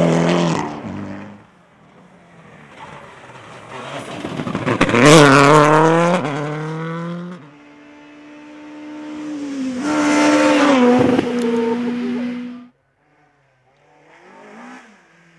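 Rally car engines roar loudly as cars speed past and shift gears.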